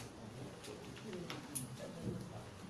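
A plastic water bottle crinkles in a hand.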